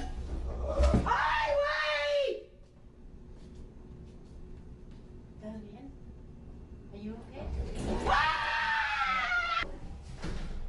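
A woman screams in terror.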